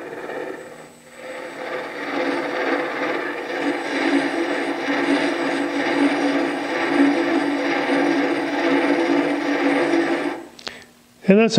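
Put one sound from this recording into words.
A chisel scrapes and hisses against wood spinning on a lathe.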